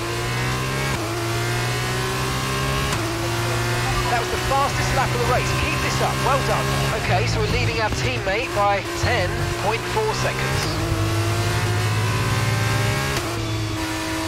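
A racing car's gearbox shifts up with sudden drops in engine pitch.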